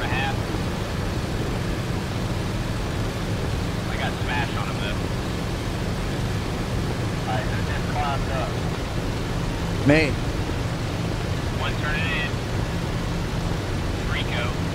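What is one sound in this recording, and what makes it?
A propeller aircraft engine drones steadily.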